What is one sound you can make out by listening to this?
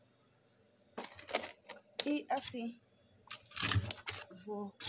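Plastic food containers knock and rattle as a hand shifts them.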